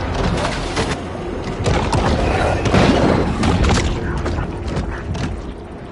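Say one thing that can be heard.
A shark bites down on its prey with a wet crunch.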